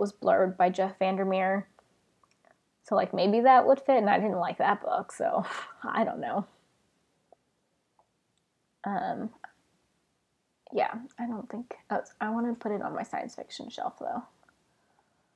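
A young woman talks calmly and closely into a microphone.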